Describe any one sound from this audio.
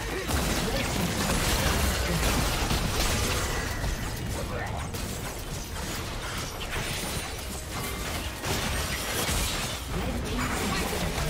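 Magic blasts, clashing blows and crackling spell effects ring out in a busy video game battle.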